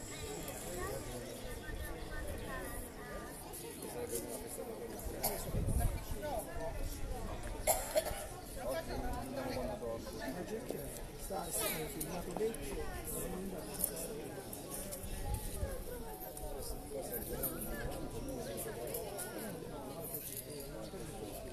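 Men and women talk outdoors at a distance.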